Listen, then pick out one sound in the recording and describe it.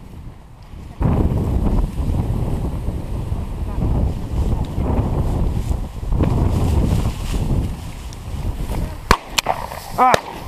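Strong wind buffets the microphone outdoors.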